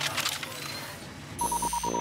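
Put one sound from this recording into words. A helicopter's rotors thud overhead.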